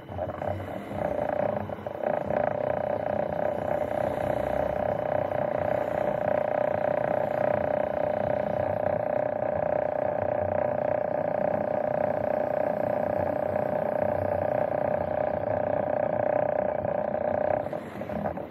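A car engine idles.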